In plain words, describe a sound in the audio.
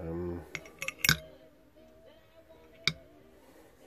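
Metal parts click and clink together.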